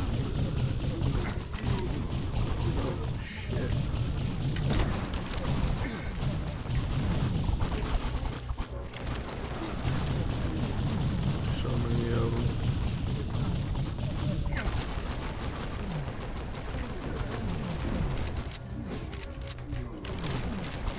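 Rapid gunfire crackles and bangs in a game.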